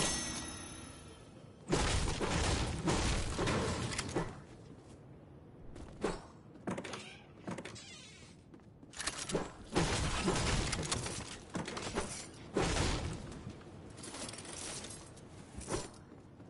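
Footsteps thud quickly across a wooden floor.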